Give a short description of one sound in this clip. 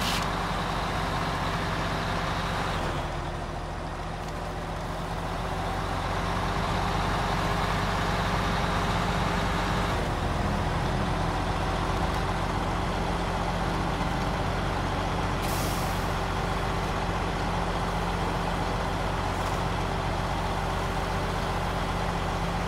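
A heavy truck engine rumbles steadily as it drives.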